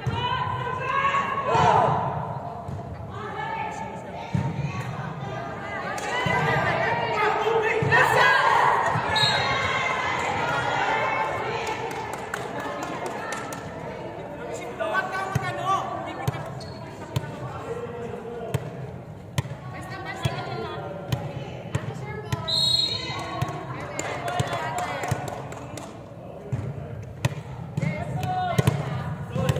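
Young people shout and chatter in a large echoing hall.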